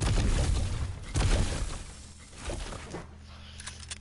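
Wooden building pieces clack into place in quick succession.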